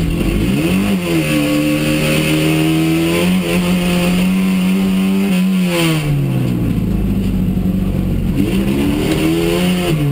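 A race car engine roars loudly, revving up and down through the gears.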